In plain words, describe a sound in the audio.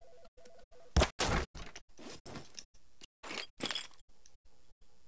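Short clicks and chimes sound as items are picked.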